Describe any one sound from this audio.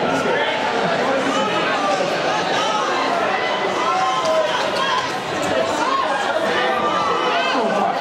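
A hockey stick clacks on a puck.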